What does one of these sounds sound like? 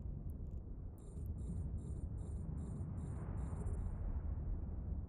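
An electronic alarm beeps in quick, even pulses.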